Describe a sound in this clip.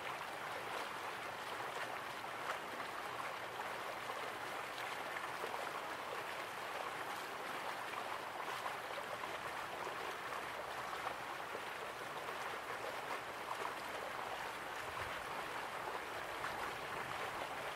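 Water splashes steadily from a small waterfall into a pool.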